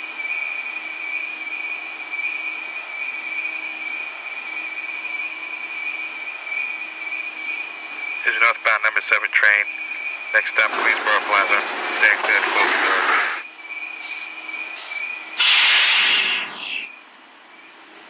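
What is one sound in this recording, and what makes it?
An electric subway train idles with a steady hum.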